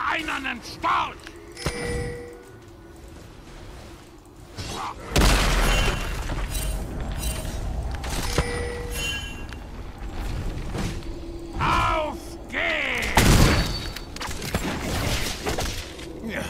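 Game weapons clash and strike during a fight.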